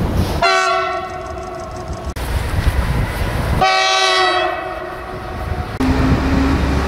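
A train horn blows two long blasts nearby.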